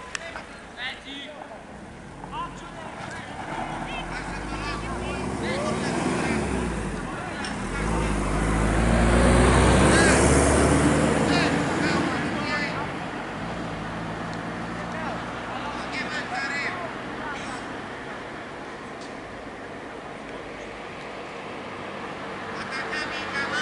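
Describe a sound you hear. Men shout to each other faintly across an open field outdoors.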